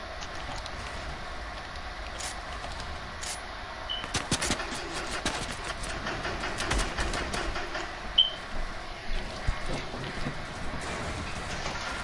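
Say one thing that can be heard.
Building pieces clatter as they are placed.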